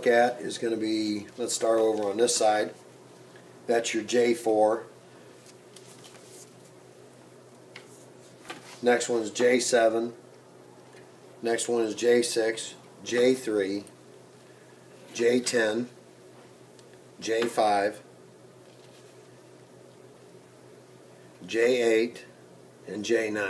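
A man speaks calmly and clearly up close, explaining in short phrases.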